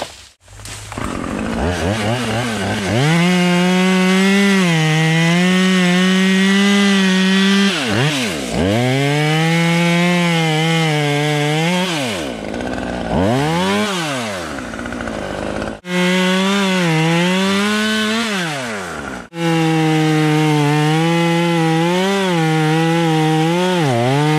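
A chainsaw engine roars loudly, revving up and bogging down as it cuts through wood.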